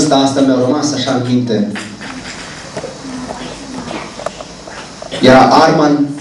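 A man speaks with animation into a microphone, heard through loudspeakers in an echoing room.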